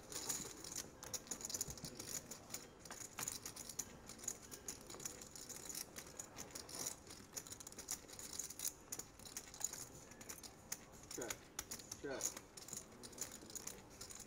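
Poker chips click and clatter against each other.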